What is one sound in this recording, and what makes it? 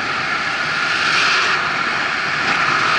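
An oncoming car whooshes past.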